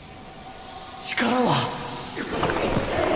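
A young man shouts with effort.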